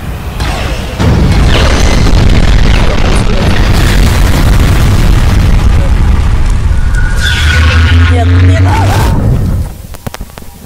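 A huge aircraft's engines roar loudly overhead.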